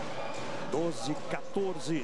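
A volleyball is struck hard with a hand.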